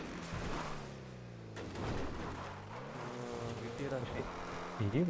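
A car engine roars and revs.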